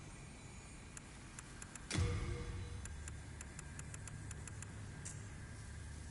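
Short menu clicks tick quickly one after another.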